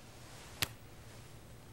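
A hand slaps against a wrist and grips it.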